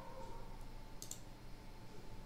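A computer mouse clicks once.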